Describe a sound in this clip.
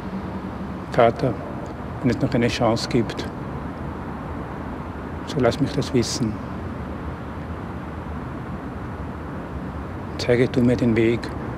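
A middle-aged man speaks softly and slowly in a large echoing hall.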